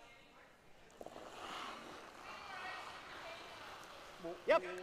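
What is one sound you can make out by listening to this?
Brooms scrub rapidly on ice.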